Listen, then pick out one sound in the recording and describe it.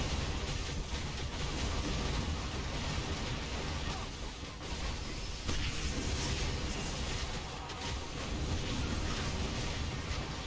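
Game music and battle effects play loudly throughout, with spell blasts and clashes.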